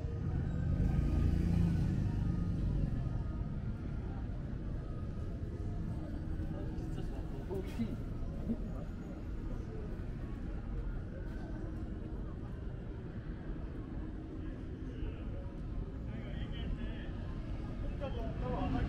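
Footsteps tap on paving stones nearby.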